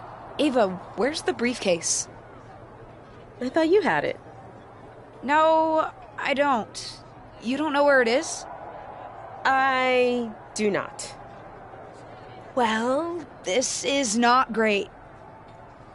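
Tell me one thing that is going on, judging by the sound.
A young woman speaks in a lively, dramatic voice close to the microphone.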